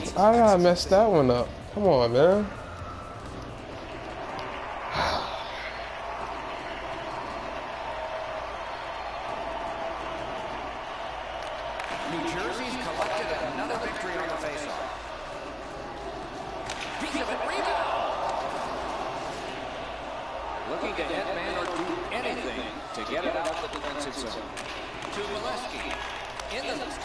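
A large crowd murmurs and cheers steadily in an arena.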